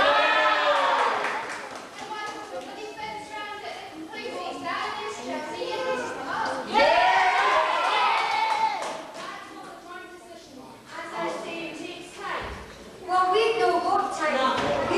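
Children sing loudly together in a large echoing hall.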